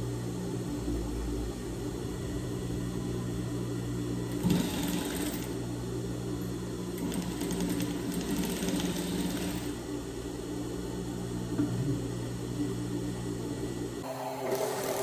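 A sewing machine hums steadily.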